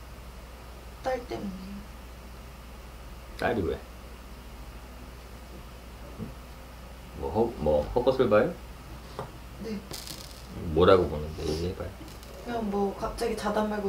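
A man speaks casually close by, in short bursts with pauses.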